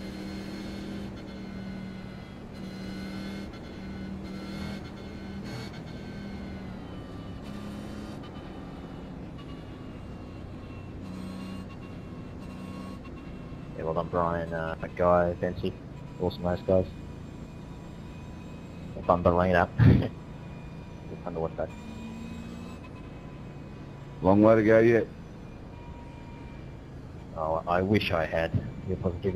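A racing car engine hums steadily and shifts in pitch.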